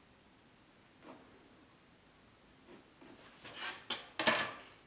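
A pencil scratches on wood.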